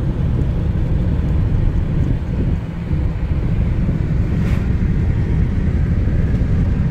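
A car rumbles steadily along a road, heard from inside.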